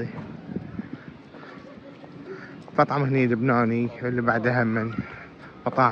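Footsteps tap on paving stones.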